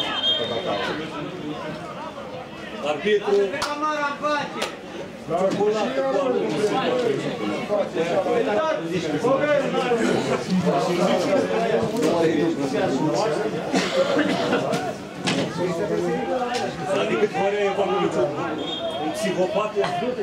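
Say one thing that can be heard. A referee's whistle blows short and shrill across an open field.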